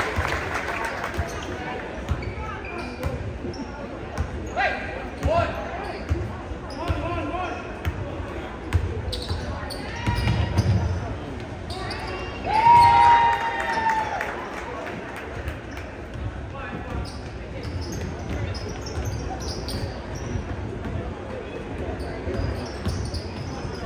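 A crowd of spectators murmurs and calls out.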